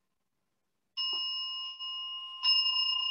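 A large metal bowl bell is struck and rings with a long, steady hum.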